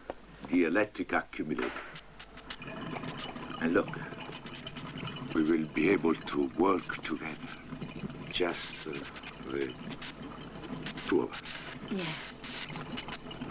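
A man speaks quietly and close by.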